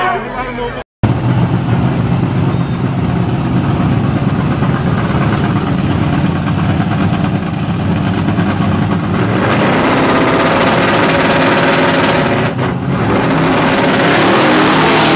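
Big engines idle with a deep, rough rumble.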